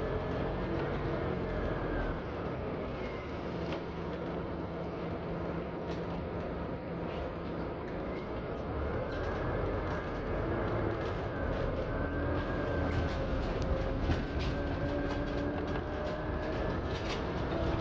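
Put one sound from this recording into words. A car drives along, heard from inside.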